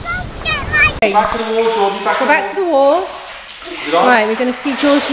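A young girl talks and calls out nearby.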